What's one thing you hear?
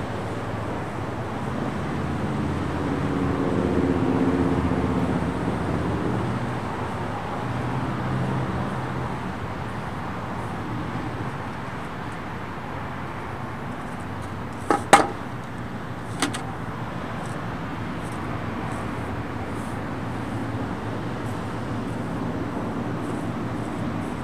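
A paintbrush brushes against concrete.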